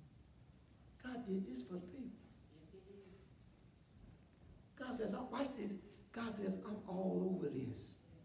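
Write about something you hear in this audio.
A man speaks calmly through a microphone in an echoing hall, with pauses.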